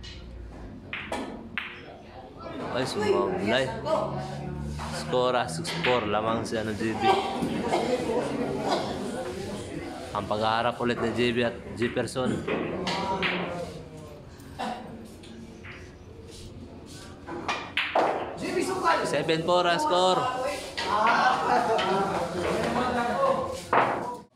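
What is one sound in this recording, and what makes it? Billiard balls click together and knock against the cushions.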